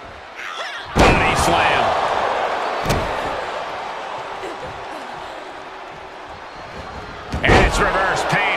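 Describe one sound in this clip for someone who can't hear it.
A body slams hard onto a wrestling mat with a loud thud.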